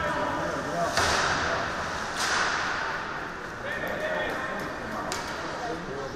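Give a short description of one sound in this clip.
Hockey sticks smack a puck with sharp cracks that echo in a large hall.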